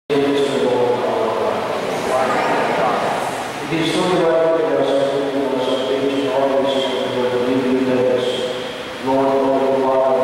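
A man sings a chant slowly through a microphone.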